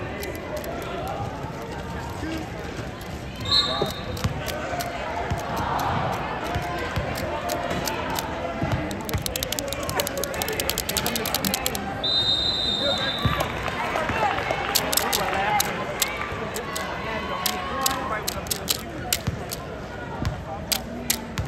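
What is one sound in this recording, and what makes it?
Voices of players and spectators murmur and call out in a large echoing hall.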